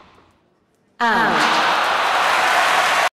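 A crowd cheers and applauds loudly.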